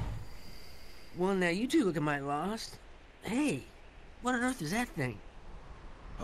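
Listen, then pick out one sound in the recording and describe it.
A middle-aged man calls out with animation.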